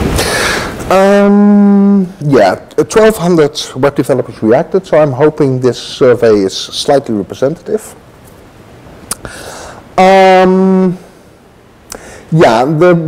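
A man speaks through a microphone in a large room, talking steadily as if presenting.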